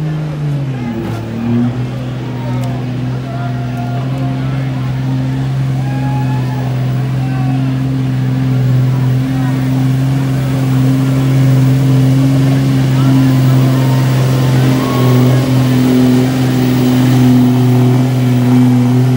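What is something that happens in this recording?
A loud truck engine roars steadily, growing louder as it pulls closer.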